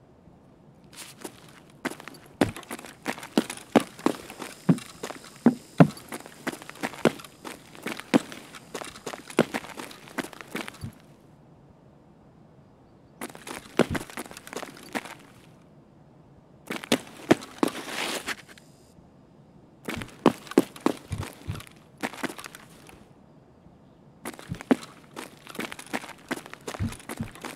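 Footsteps thud steadily on a hard floor and stairs.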